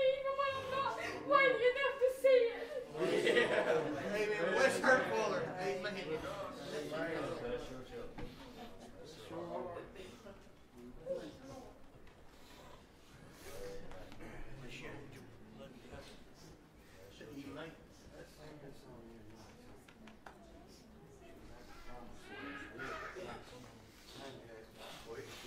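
A crowd of men and women chat and murmur in a room with some echo.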